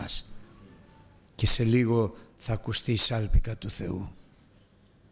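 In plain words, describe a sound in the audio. A middle-aged man speaks with emphasis into a microphone in a reverberant hall.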